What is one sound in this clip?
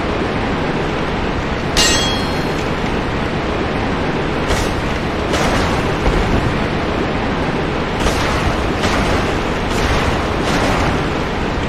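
Fire bursts with a loud whoosh.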